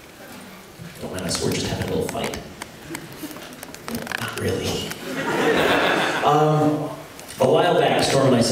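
A man talks with animation through a microphone in a large hall.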